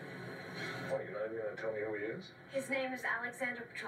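A woman speaks quietly, heard through a television speaker.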